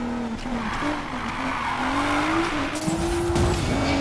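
Tyres screech as a car drifts around a bend.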